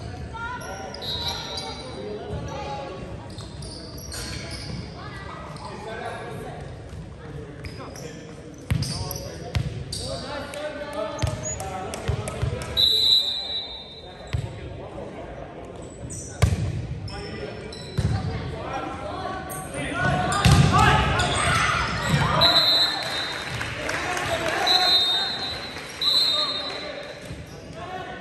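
A volleyball thumps off hands and arms during a rally in a large echoing gym.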